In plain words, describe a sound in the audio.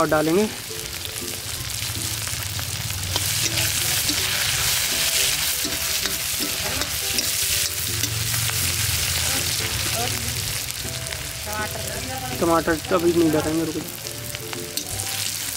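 Food sizzles and crackles in a hot wok.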